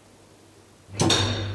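Elevator doors thud shut.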